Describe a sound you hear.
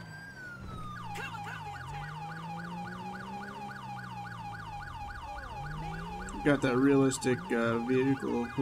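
A police siren yelps rapidly.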